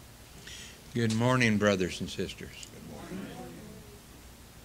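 An elderly man speaks briefly into a microphone in a large, echoing room.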